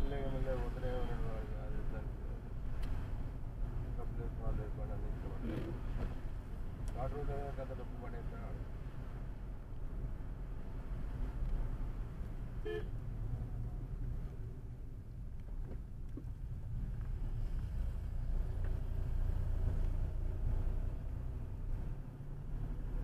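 A car engine hums steadily with a low road rumble inside the car.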